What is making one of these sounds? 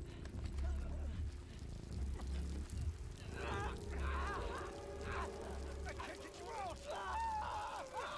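A man in a game groans and cries out in pain.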